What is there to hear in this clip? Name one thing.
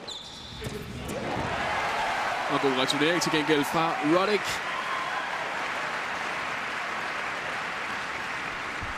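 A crowd applauds and cheers loudly in a large arena.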